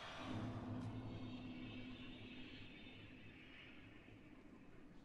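A deep resonant tone swells and slowly fades away.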